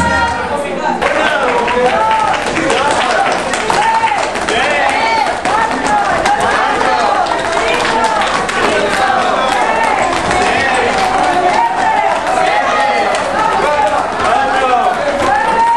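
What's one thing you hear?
A crowd of young women and men chatter and call out in an echoing hall.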